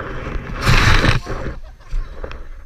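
A person slides fast across a wet plastic sheet with a loud splashing rush.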